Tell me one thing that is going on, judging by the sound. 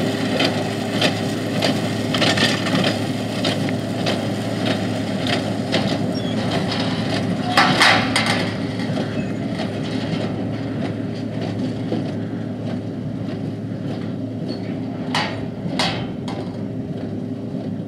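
A diesel tractor drones as it pulls a baler across a field.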